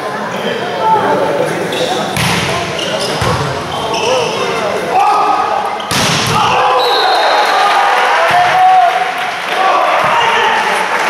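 Players shout and call out loudly in an echoing hall.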